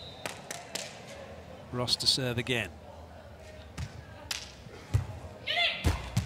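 A volleyball is struck with dull thuds.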